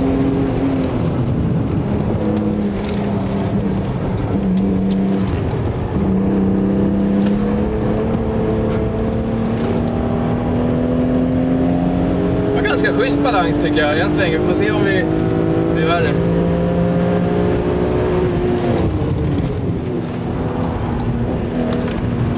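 Wind rushes past the car.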